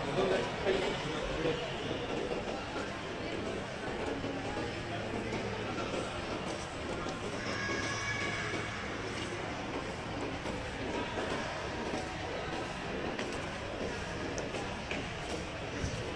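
Many people chatter indistinctly in a large echoing hall.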